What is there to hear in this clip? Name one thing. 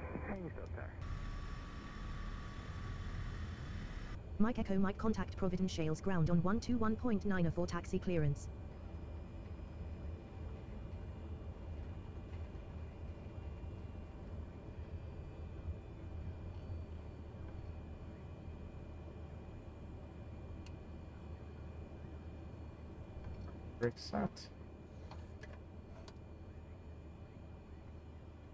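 An aircraft engine hums steadily.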